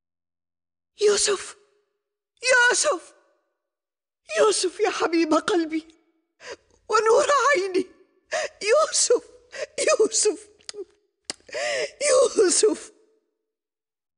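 An elderly woman speaks softly.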